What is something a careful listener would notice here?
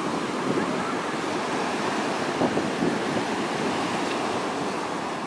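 Waves break and wash around continuously.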